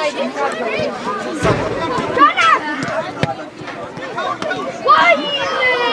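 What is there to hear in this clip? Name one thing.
Players and spectators shout outdoors across a sports field.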